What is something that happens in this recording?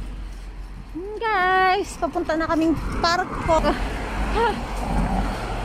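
A young girl calls out in a high voice.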